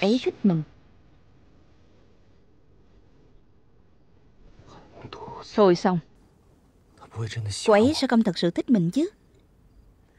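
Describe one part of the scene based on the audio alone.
A young man speaks quietly and with feeling, close by.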